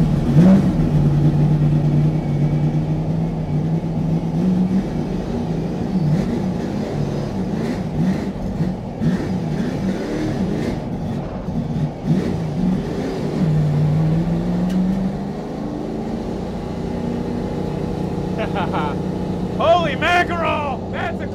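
A car engine idles loudly up close, then revs and rumbles as the car pulls away.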